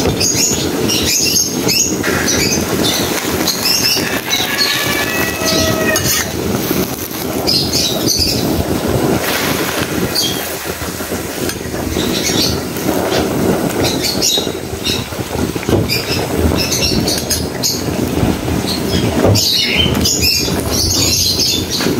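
Leaves sizzle and hiss as they are stirred in a hot pan.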